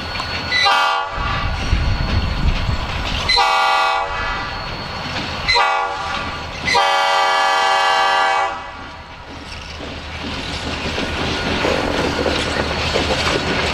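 A diesel locomotive engine rumbles as it rolls past.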